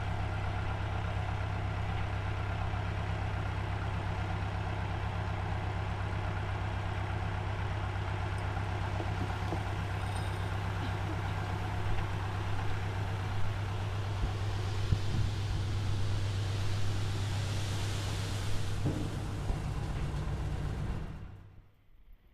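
A tractor engine idles with a steady low rumble, then cuts out.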